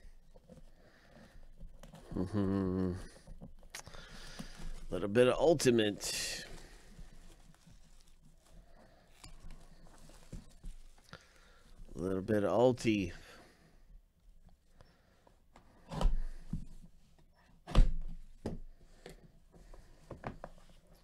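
A cardboard box thumps and rustles as it is handled.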